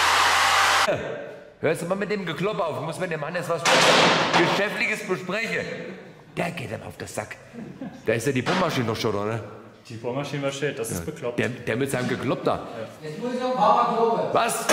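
A man talks cheerfully close by.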